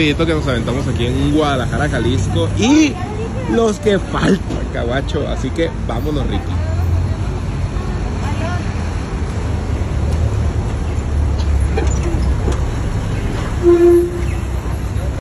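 Traffic rumbles along a street outdoors.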